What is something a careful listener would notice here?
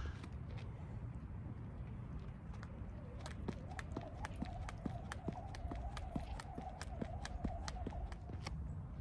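A jump rope ticks against the ground in a quick, even rhythm.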